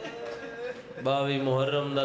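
A young man sings a loud, drawn-out lament into a microphone.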